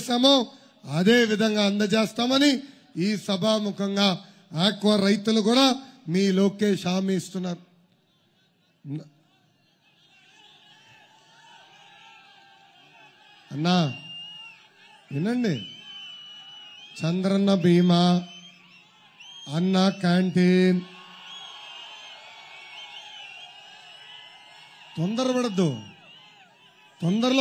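A man speaks forcefully into a microphone, heard through loudspeakers in short bursts.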